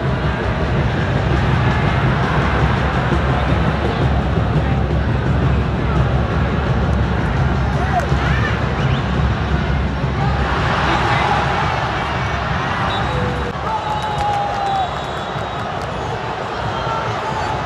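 A large stadium crowd roars and chants loudly.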